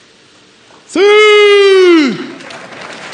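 A man shouts a long, loud cry through a microphone in a large hall.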